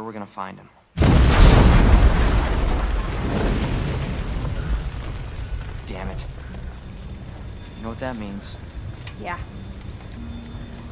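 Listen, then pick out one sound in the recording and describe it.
A fire roars loudly and then slowly dies down.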